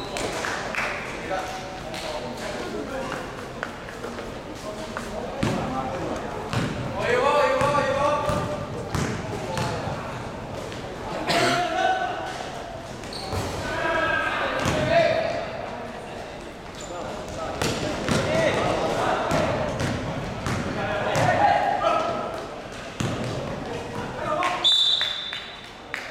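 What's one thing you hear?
Sneakers squeak on the court.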